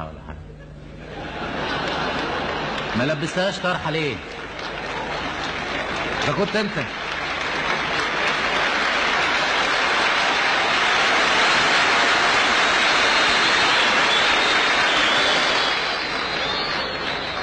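A large crowd laughs loudly in a big hall.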